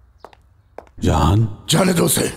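A middle-aged man speaks loudly and urgently, close by.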